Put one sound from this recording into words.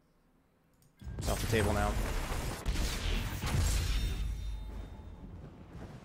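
A loud, booming game fanfare with a whoosh bursts in and slowly fades.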